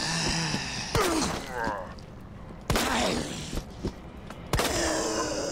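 Pistol shots bang sharply, a few times.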